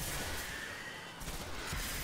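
Gunfire rattles.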